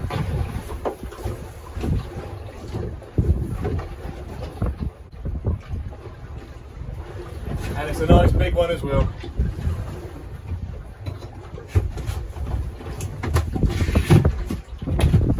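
Wind buffets the microphone outdoors with a low rumble.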